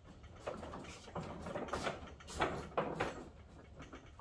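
A heavy wheeled cart rolls and rattles over a concrete floor.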